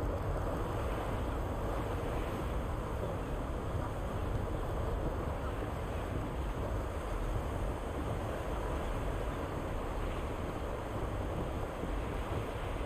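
Water splashes and rushes steadily against a raft.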